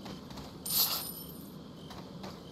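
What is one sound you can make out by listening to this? A bright chime rings out as treasure is collected.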